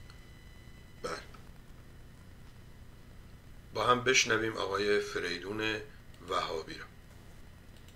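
An older man speaks calmly into a close microphone, in short bursts.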